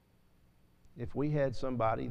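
A middle-aged man speaks slowly and earnestly into a microphone.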